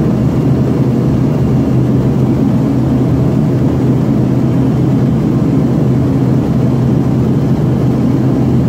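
Jet engines roar steadily inside the cabin of a regional jet in flight.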